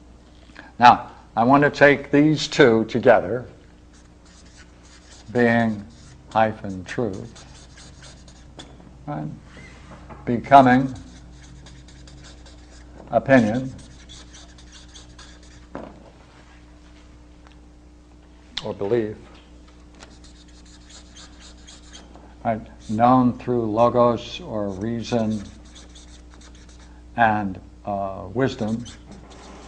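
An elderly man speaks calmly and slowly, as if lecturing, close by.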